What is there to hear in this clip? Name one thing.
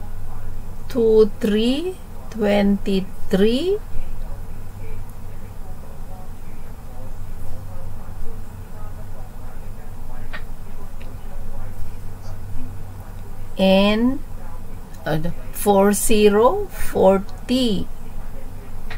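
An older woman speaks through a microphone.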